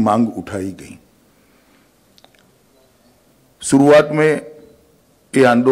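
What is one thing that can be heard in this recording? A man speaks calmly into a microphone, reading out in short phrases with pauses.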